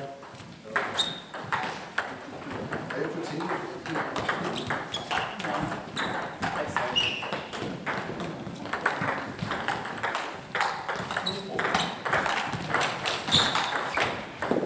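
Sports shoes squeak on a hall floor.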